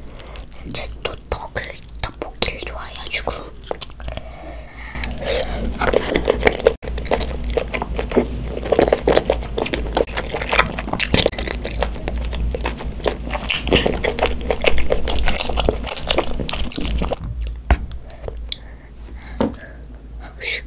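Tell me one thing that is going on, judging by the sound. A young girl chews and slurps food loudly, close to a microphone.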